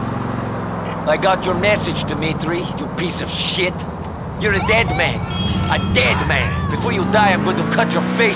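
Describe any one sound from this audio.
Car tyres squeal on the road during sharp turns.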